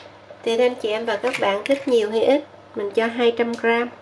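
Water pours into a plastic bowl.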